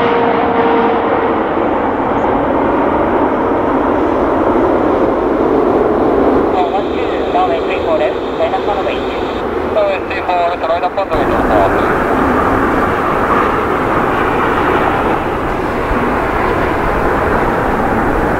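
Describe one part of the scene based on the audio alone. A jet airliner's engines roar loudly and steadily.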